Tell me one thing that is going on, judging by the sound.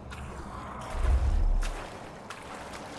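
Water splashes loudly as a swimmer breaks the surface.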